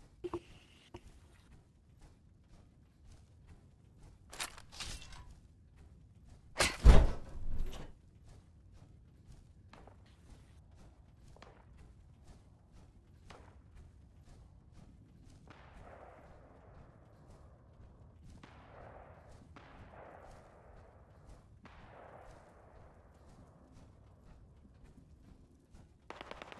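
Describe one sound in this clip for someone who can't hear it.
Heavy metallic footsteps thud steadily on the ground.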